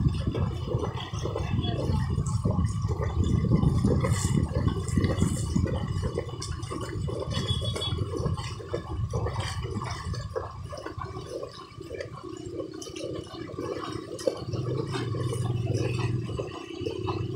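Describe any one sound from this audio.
A motorbike engine hums steadily.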